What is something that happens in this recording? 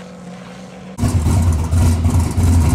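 A V8 sports car rumbles loudly at low revs.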